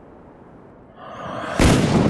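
A rifle is raised to aim with a quick rustling whoosh.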